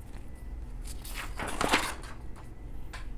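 A sheet of paper rustles as a page is turned.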